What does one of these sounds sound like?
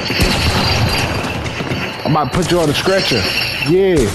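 Shotgun blasts fire in quick bursts.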